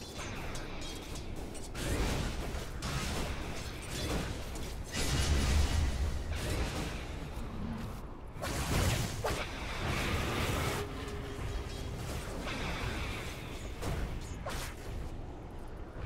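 Fantasy weapons clash and magic spells burst in a fast battle.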